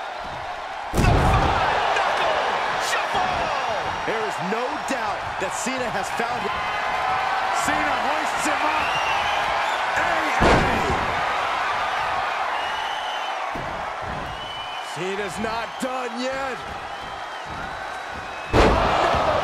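Heavy thuds ring out as a body slams onto the ring mat.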